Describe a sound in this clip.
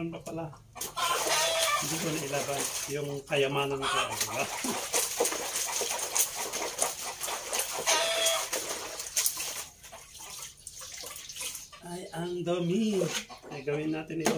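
Wet clothes are scrubbed and sloshed in a basin of water.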